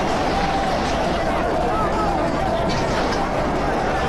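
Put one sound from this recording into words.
A large crowd shouts and chants outdoors.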